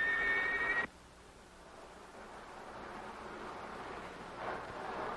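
A car drives past with a rising engine hum.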